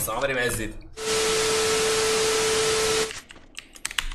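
Television static hisses loudly with a steady high beep.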